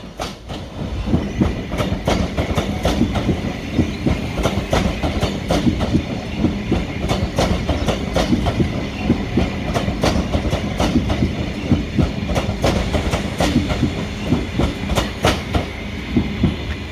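Train wheels clatter rhythmically over rail joints as carriages pass close by.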